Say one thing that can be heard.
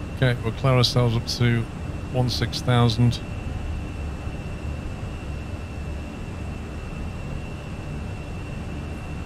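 A steady low engine drone hums throughout.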